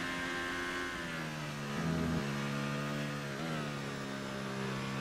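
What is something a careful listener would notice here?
A Formula One car engine drops in pitch as the car brakes for a corner.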